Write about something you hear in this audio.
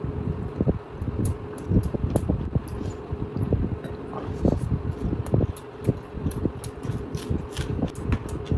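A man chews food noisily, close to a microphone.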